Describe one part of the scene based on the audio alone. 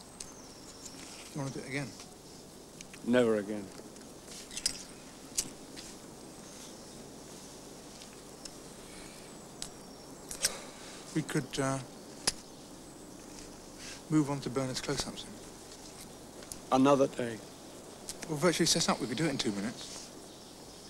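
Young men talk calmly outdoors, with pauses between their words.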